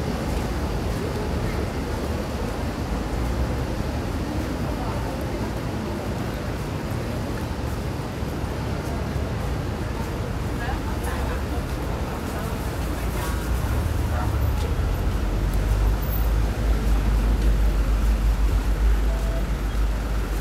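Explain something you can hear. A bus engine rumbles nearby, growing louder.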